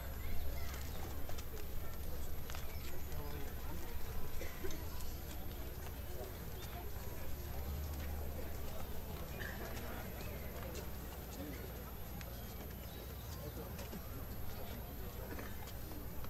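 A crowd of men and women murmurs quietly outdoors.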